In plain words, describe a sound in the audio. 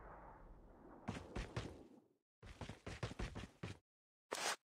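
Footsteps tread quickly on pavement.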